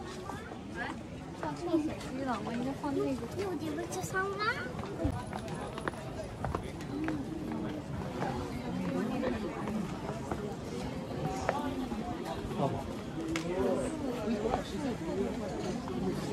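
Footsteps shuffle on paving stones.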